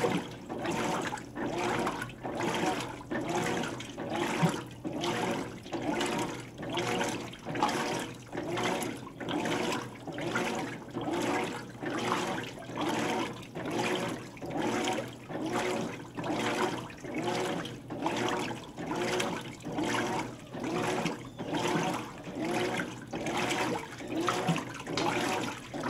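A washing machine agitator churns back and forth in a steady rhythm.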